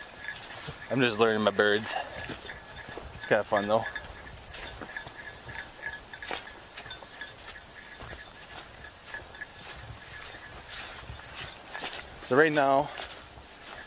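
A man speaks in short bursts close by, outdoors.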